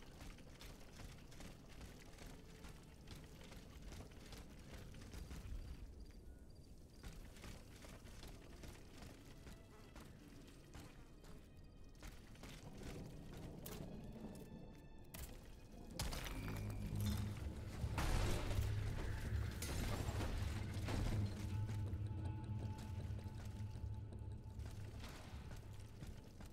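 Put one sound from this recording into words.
Footsteps run across wet stone.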